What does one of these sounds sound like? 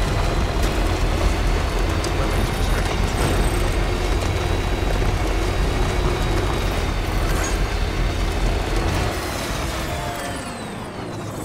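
Tyres crunch over gravel and rocks.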